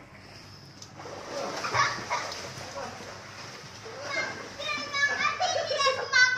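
Water splashes loudly as a child swims and kicks.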